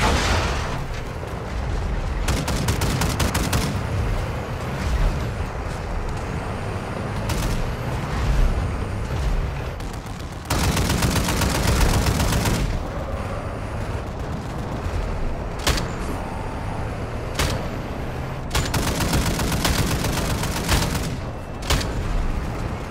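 A heavy armoured vehicle's engine rumbles steadily.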